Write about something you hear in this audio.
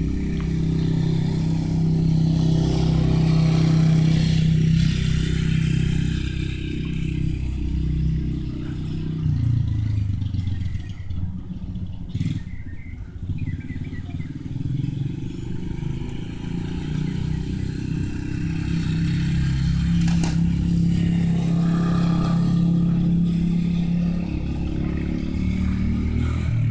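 A small motor hums steadily, rising and falling outdoors.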